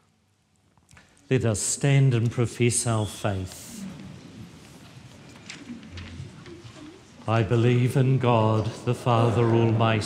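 A man sings into a microphone in a large echoing hall.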